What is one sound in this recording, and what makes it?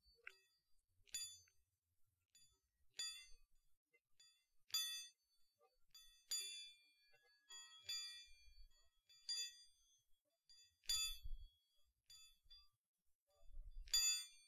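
Fingers tap and rustle close to a microphone.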